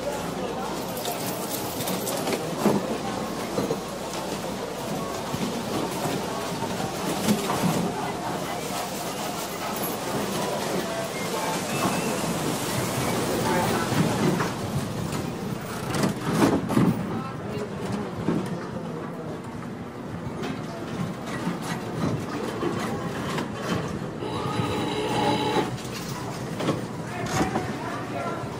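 Slot machines chime and jingle.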